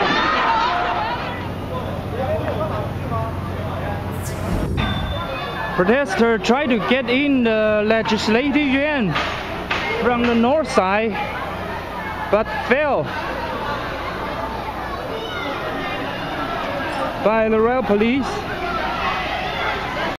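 A large crowd clamours outdoors.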